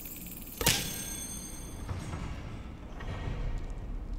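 Doors of a cabinet swing open.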